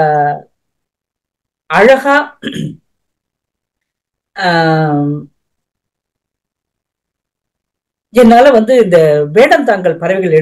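An elderly woman speaks over an online call, in short phrases with pauses.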